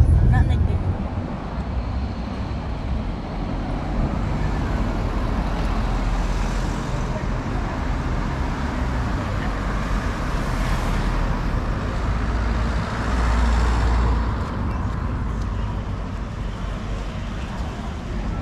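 A crowd of people chatters in the street.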